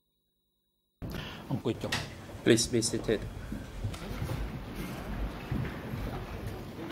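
People shuffle and chairs knock as a group sits down.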